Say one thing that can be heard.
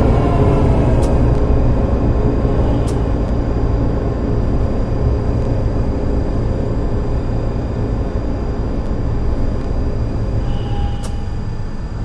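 Tram wheels clatter over rail joints.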